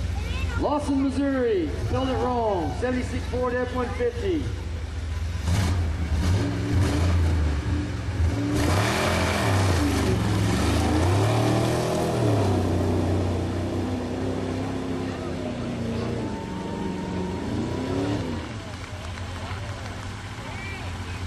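A truck engine roars and revs hard, rising and falling in pitch.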